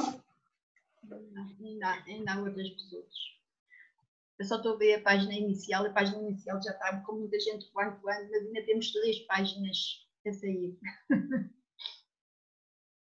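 A woman sings into a microphone, heard over an online call.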